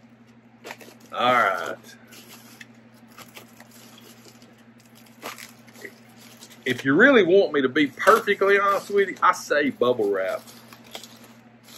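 Bubble wrap crinkles and rustles as it is torn open.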